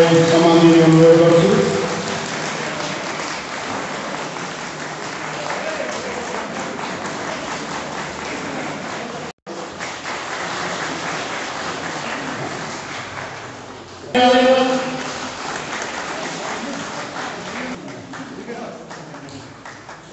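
People chatter in a crowd indoors.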